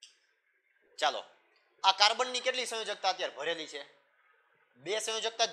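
A young man explains calmly, close to a microphone.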